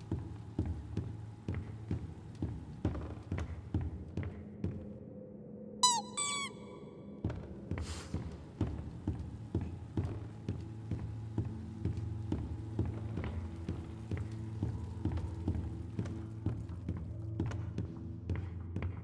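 Footsteps thud steadily on wooden floorboards.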